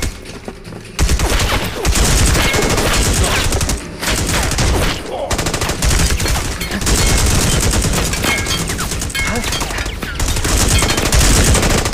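Rifles fire in rapid bursts of loud shots.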